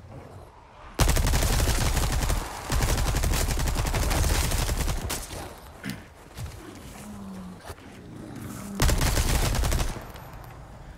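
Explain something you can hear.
A pistol fires with a loud bang and rumbling echo.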